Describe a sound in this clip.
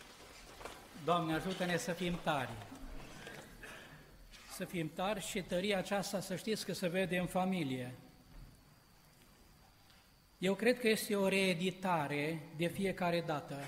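A man speaks slowly through a microphone in a large echoing hall.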